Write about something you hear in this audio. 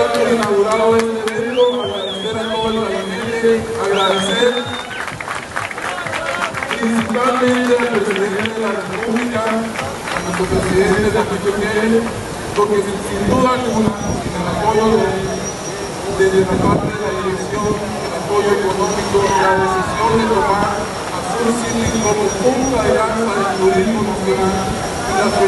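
A man speaks with animation into a microphone, heard through loudspeakers outdoors.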